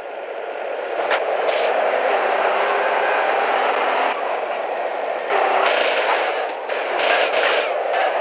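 A car engine revs loudly as the car speeds along.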